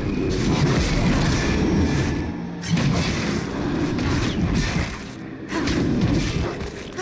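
Fantasy game combat sounds clash and whoosh.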